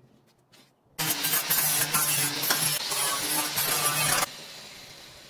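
An angle grinder whines loudly as it cuts through metal.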